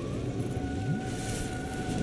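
Flames flare up with a roar.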